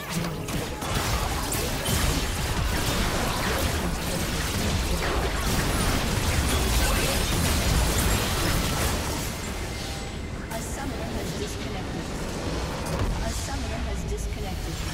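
Game spells and attacks crackle and boom in a busy battle.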